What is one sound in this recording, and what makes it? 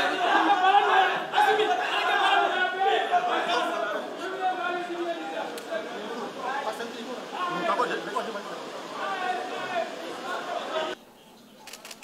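A crowd of men talk and murmur nearby.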